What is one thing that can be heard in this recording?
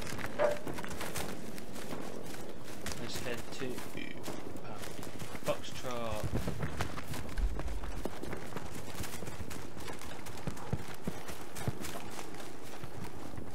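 Footsteps rustle through dense bushes.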